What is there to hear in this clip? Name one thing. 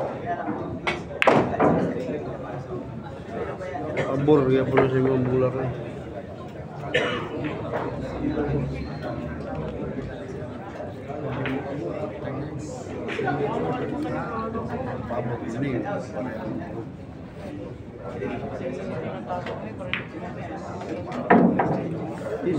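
Pool balls clack together sharply.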